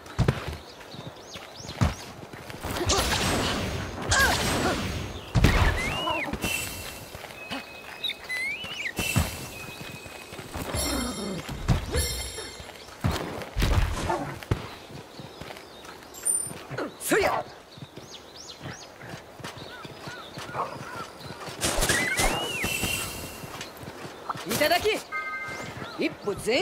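Heavy footsteps thud and clatter on rocky ground.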